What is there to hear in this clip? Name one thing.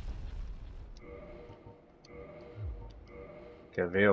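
A menu chimes softly as options are selected.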